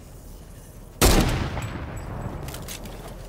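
A sniper rifle fires one loud shot that echoes away.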